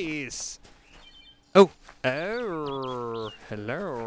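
Footsteps run across grass.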